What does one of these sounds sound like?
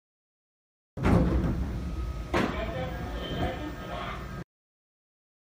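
Train doors slide open.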